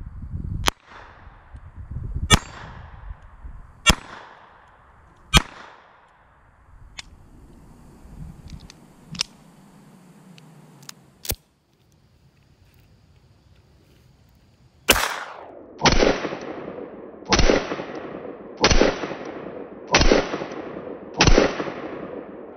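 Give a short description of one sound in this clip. A small pistol fires sharp shots outdoors, each crack echoing away.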